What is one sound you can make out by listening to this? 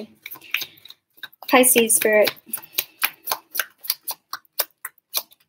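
Playing cards flick and riffle as they are shuffled, in a quick rhythmic patter.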